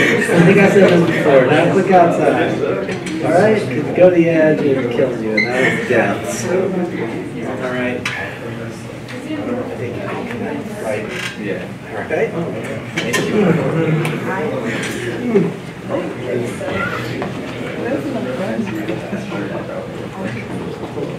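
An elderly man lectures calmly in a room with some echo.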